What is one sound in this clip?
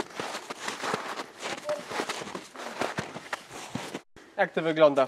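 A shovel scrapes and digs in snow.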